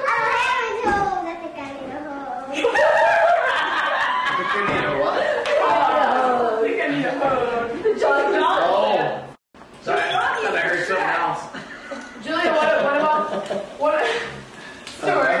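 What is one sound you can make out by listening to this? Young girls sing together close by.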